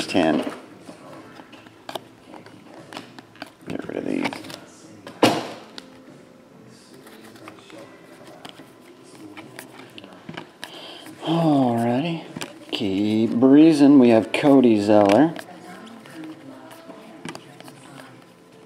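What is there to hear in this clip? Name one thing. Trading cards rustle and flick as a hand sorts through them.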